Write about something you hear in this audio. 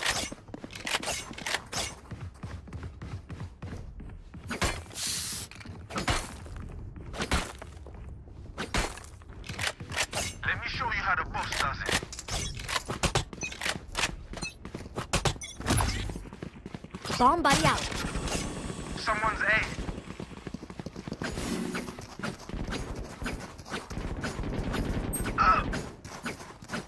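A knife swishes through the air.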